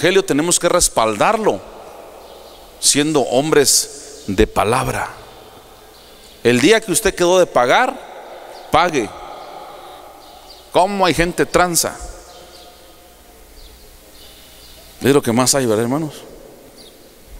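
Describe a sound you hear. A man preaches with animation into a microphone, heard through loudspeakers in an echoing hall, in bursts with pauses.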